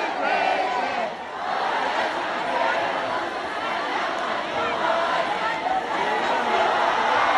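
A large crowd cheers and sings along loudly in a big echoing arena.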